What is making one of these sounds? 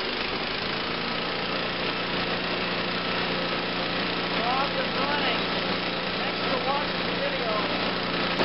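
A small petrol engine runs steadily with a loud rumbling drone.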